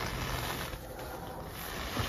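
A fingertip taps a touchscreen.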